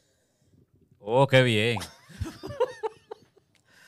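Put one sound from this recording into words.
A man laughs heartily into a close microphone.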